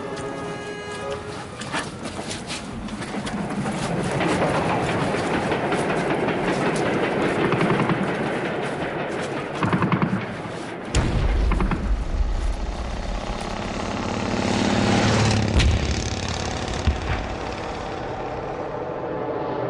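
Flags flap in a strong wind.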